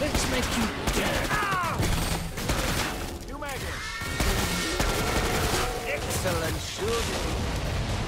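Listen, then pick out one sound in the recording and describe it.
Monsters screech and growl.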